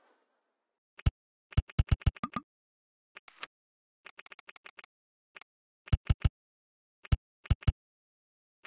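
Short game building sounds click in quick bursts.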